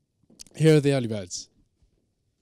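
A young man announces loudly through a microphone.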